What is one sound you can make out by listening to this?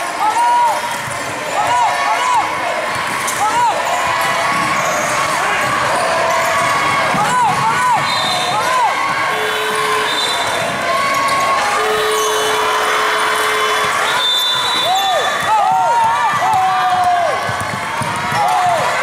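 Sneakers squeak sharply on a hard court, over and over.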